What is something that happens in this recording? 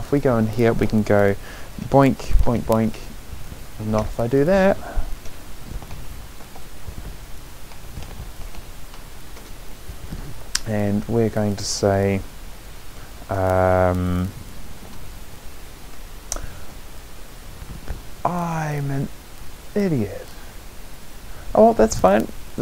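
A man talks in bursts into a close microphone, with pauses between.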